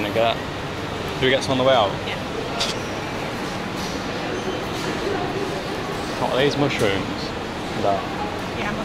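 A murmur of a crowd echoes through a large hall.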